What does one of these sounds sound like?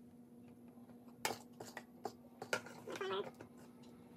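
A spoon scrapes and taps inside a bowl.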